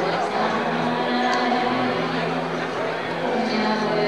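A middle-aged woman laughs and talks close by.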